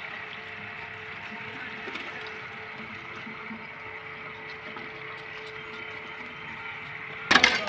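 Metal dishes clink softly.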